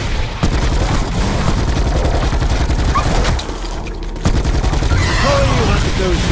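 A rapid-firing gun shoots in quick bursts.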